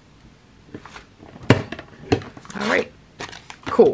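A hand tool clicks and thunks as it punches paper.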